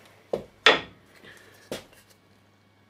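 Wooden pieces knock together.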